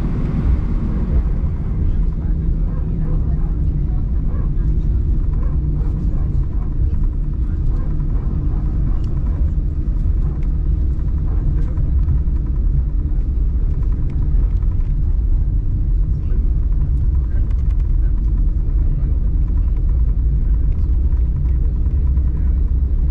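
Aircraft wheels rumble and thump over the runway.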